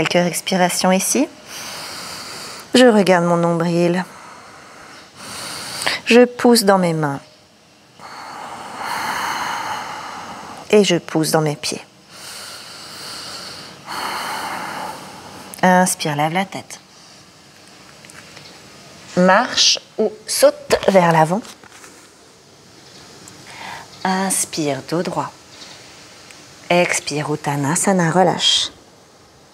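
A young woman speaks calmly and softly, close to a microphone.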